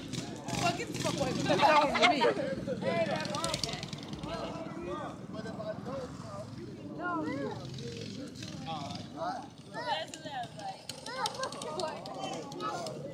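Several adults and children talk and chatter nearby outdoors.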